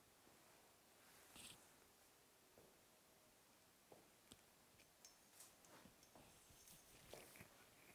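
Clothing rustles softly.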